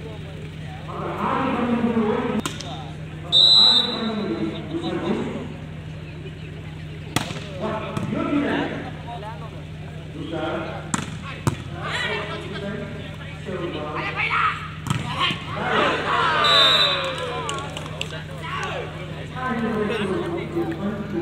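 Young men shout and call out loudly outdoors.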